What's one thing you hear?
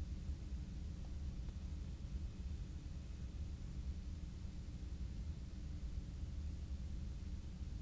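A motor hums with a steady, low rumble.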